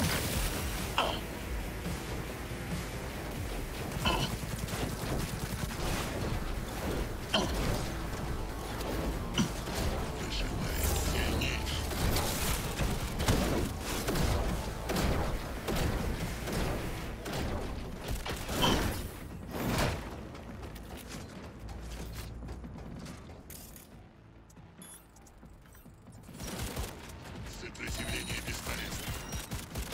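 Guns fire in sharp bursts.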